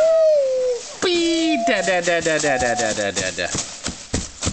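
A baby squeals and babbles up close.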